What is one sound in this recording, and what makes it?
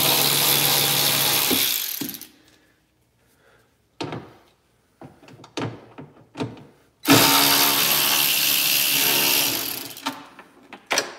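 A power tool whirs in short bursts.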